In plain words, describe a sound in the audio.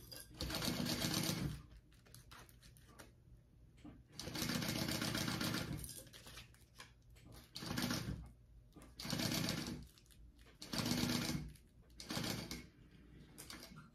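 A sewing machine stitches in short bursts.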